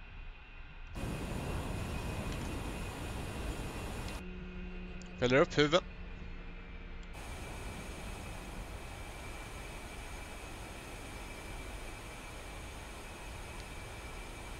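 A jet engine whines and roars nearby.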